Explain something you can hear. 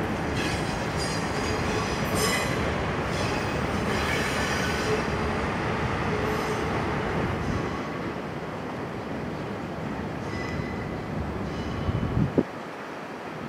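A train rumbles along the tracks, moving away and fading.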